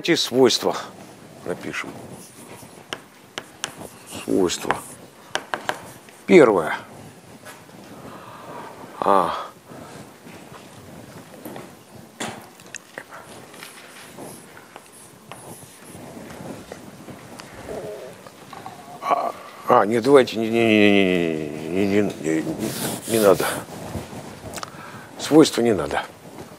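An elderly man lectures in an echoing hall, speaking with animation.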